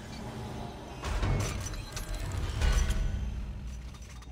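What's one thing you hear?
A heavy metal door rumbles and clanks open.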